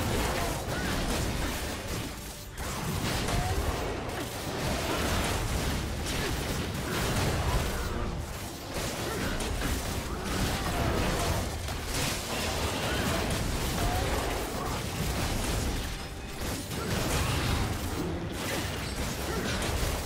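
Game spell effects whoosh and crackle in a rapid battle.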